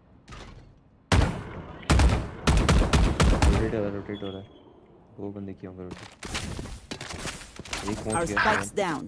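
A gun fires a series of rapid shots.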